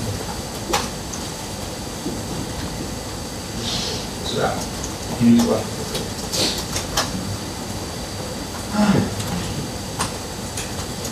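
Keys click on a laptop keyboard.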